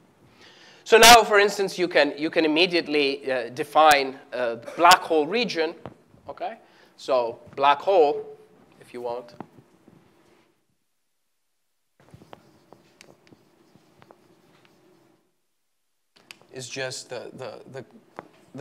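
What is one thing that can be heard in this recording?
A man lectures with animation in a large echoing hall.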